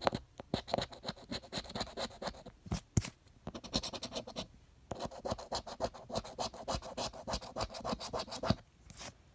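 A coin scratches rapidly across a scratch card.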